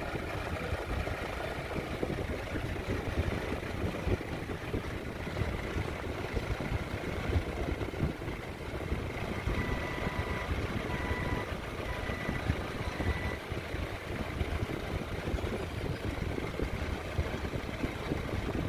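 A forklift engine rumbles and idles nearby.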